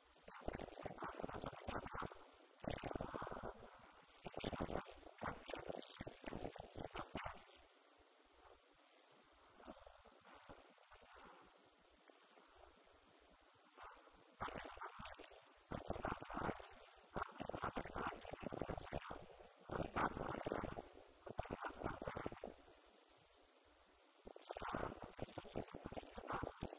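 An elderly man speaks calmly into a microphone, with pauses, heard through a loudspeaker in a room.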